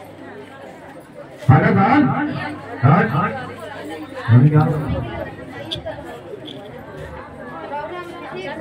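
A crowd of men and women chatters close by.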